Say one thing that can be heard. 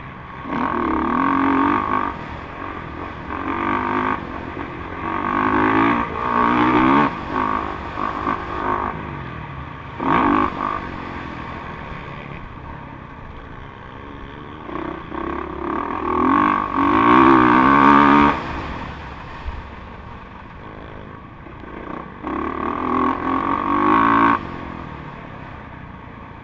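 A dirt bike engine revs hard up close, rising and falling in pitch as gears shift.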